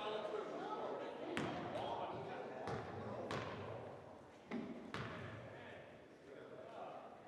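Several people talk and call out indistinctly in an echoing gym.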